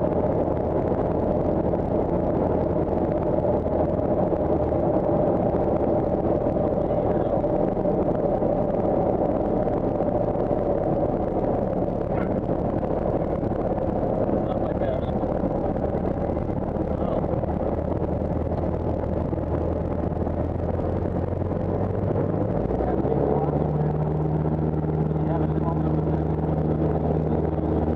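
A small plane's engine drones loudly and steadily, its pitch shifting near the end.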